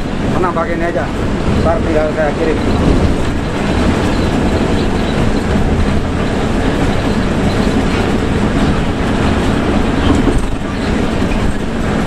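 A bus engine rumbles steadily from inside the cabin.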